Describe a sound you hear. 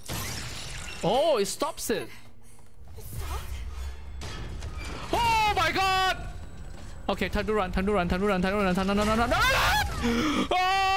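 A monster shrieks loudly.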